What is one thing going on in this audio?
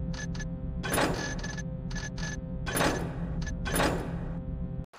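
Menu buttons click sharply a few times.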